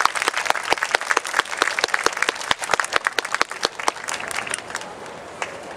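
An audience claps and applauds outdoors.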